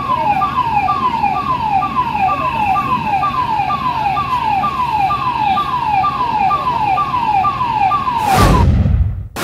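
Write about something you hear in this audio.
Water sprays hard from a fire hose.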